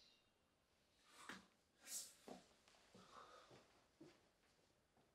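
Footsteps cross the floor as a young man walks away.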